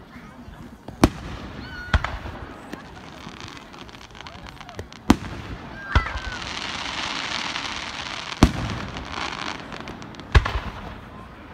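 Fireworks burst with loud, sharp bangs, far off.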